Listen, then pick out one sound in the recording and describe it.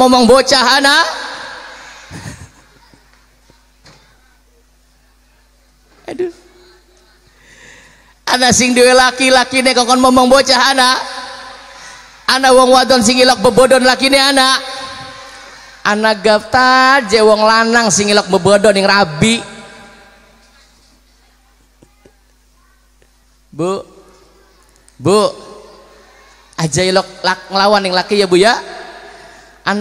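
A man sings loudly into a microphone over loudspeakers.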